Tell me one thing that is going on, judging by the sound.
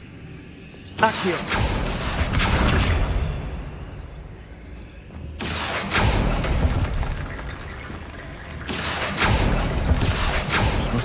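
A magic spell whooshes and crackles in bursts.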